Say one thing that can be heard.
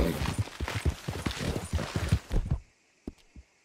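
Leafy plants rustle and swish as a horse pushes through them.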